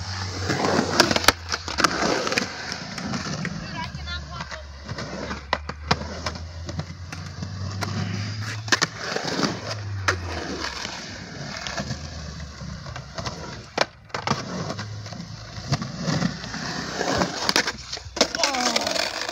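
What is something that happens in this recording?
A skateboard clacks and snaps against concrete.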